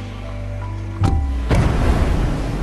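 A loud whoosh bursts out suddenly.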